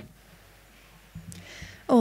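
A guitar is strummed briefly.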